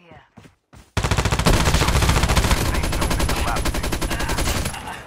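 A machine gun fires rapid, loud bursts.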